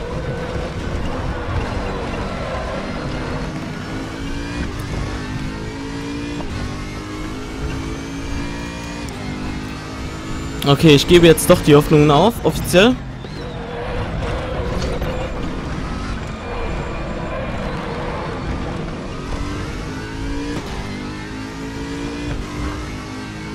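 A racing car engine roars, rising and falling in pitch as the gears change.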